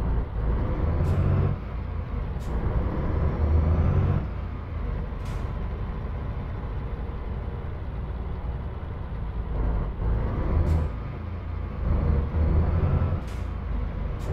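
A heavy truck engine rumbles, swelling and easing off in waves.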